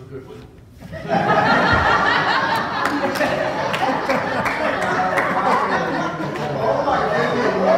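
A man speaks loudly to a group in a large echoing hall.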